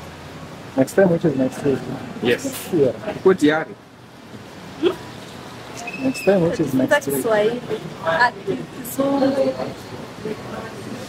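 A young woman speaks cheerfully and close by.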